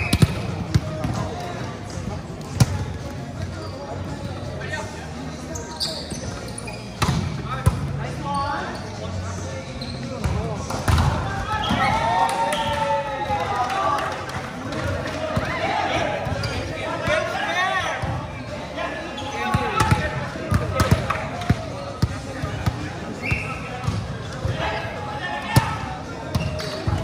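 A volleyball thumps against hands and arms in a large echoing hall.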